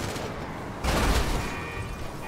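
A car crashes with a loud thud.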